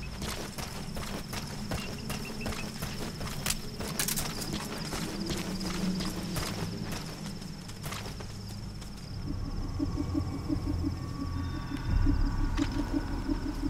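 Crickets chirp steadily outdoors at night.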